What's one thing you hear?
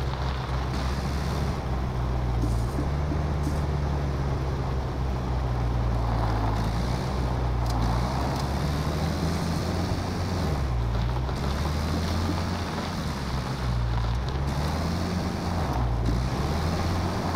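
Tyres crunch over rough ground and brush.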